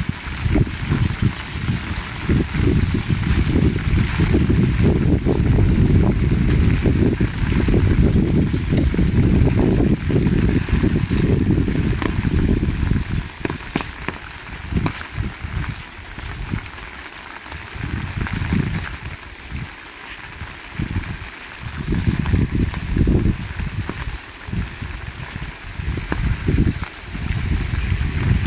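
Footsteps tread on a wet road.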